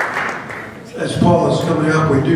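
A man speaks loudly into a microphone over a loudspeaker.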